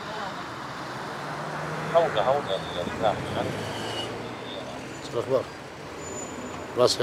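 Vehicles drive past on a road.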